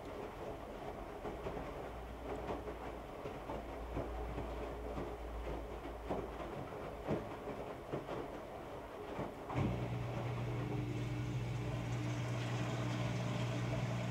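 A washing machine motor hums steadily, rising to a louder drone.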